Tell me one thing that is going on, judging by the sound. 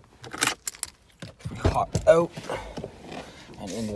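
A car door unlatches and swings open with a click.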